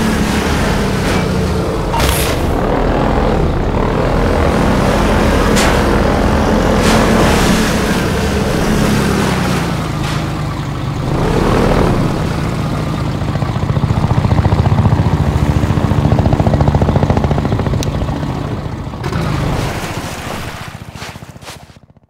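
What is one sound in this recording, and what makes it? An airboat engine roars steadily and loudly, then fades away.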